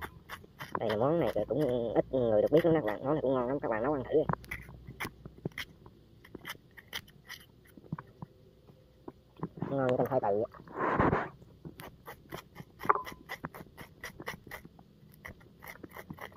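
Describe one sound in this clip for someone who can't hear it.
A metal spoon scrapes and taps against a vegetable's skin in short strokes.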